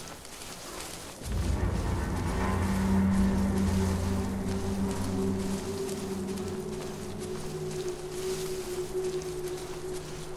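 Footsteps swish through tall grass at a steady walking pace.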